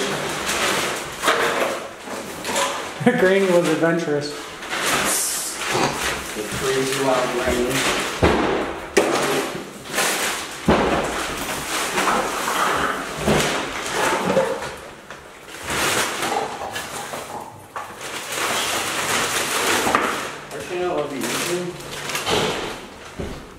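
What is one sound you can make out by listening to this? A plastic trash bag rustles and crinkles as it is stuffed and handled.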